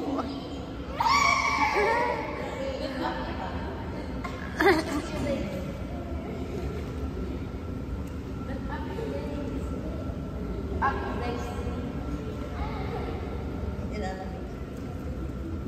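Children shout and squeal excitedly, echoing in a large indoor hall.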